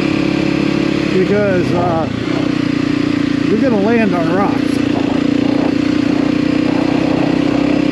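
A dirt bike engine drones steadily, revving up and down now and then.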